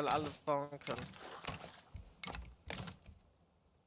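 A hammer knocks on wooden planks.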